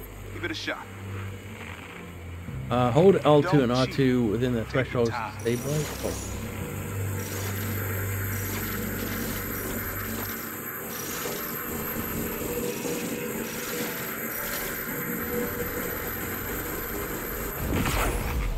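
An electronic device hums and crackles steadily.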